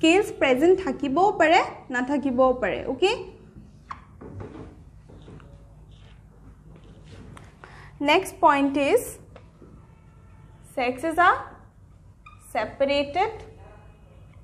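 A young woman speaks calmly, as if teaching.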